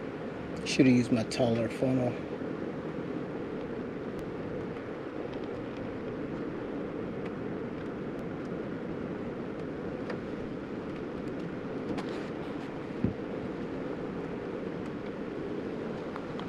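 Oil pours steadily into a funnel with a soft gurgle.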